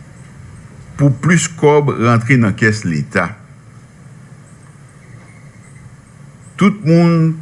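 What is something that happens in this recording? A middle-aged man speaks calmly and formally into a microphone, with long pauses.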